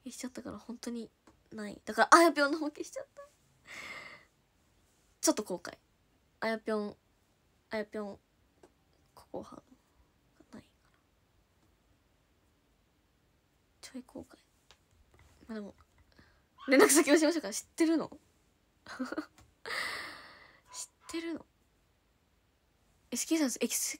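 A young woman talks casually and close to a microphone, with pauses.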